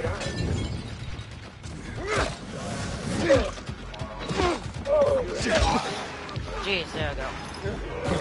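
Creatures snarl and growl up close.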